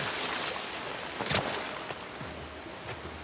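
Water splashes as a man swims through a muddy river.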